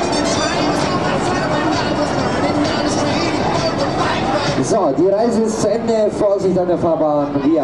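A fairground ride whirs as it spins.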